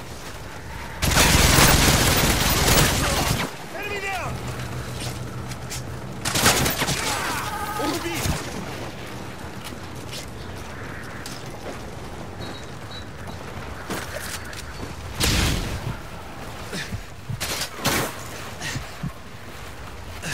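Gunfire from a video game rattles in bursts.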